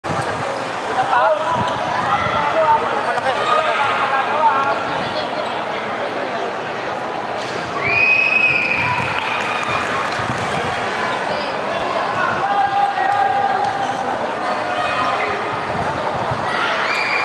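A crowd of young spectators chatters and shouts in a large echoing hall.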